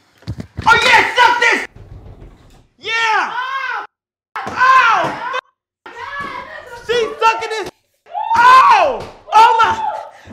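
A young woman exclaims in surprise.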